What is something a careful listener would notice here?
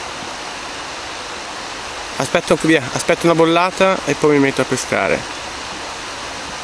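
A river flows gently past rocks.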